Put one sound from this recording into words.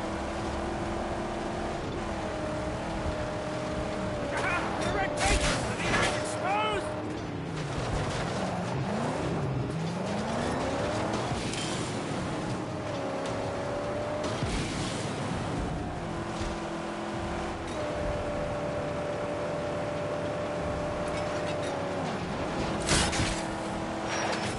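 A souped-up muscle car engine roars at speed.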